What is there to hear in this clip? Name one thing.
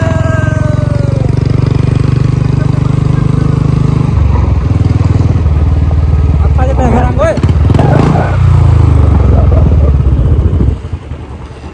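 A motorcycle engine hums steadily as it rides.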